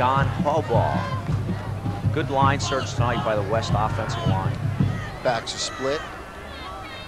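Football players shout across an open field, heard from a distance.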